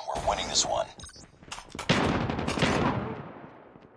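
A rifle is reloaded with sharp metallic clicks.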